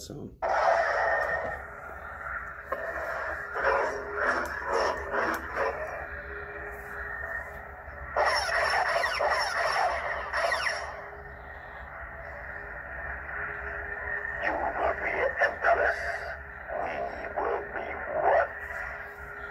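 A toy light sword plays bursts of crackling, whooshing sound effects.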